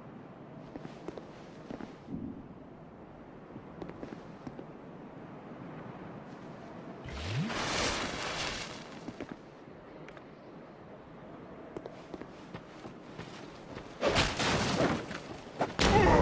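Armoured footsteps tread on stone.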